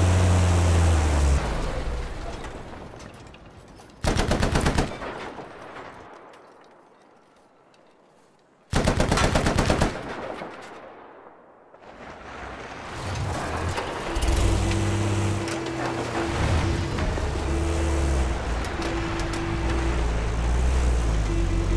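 A heavy truck engine rumbles and revs.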